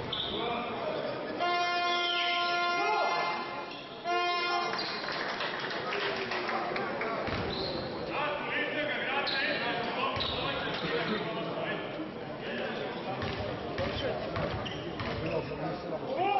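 Men call out and talk across an echoing gym.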